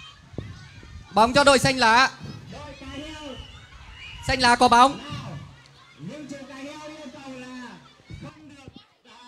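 Water splashes as children wade and play in a pool.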